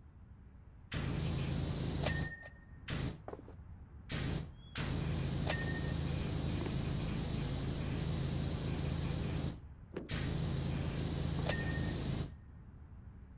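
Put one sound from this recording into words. A pressure washer sprays water in loud hissing bursts.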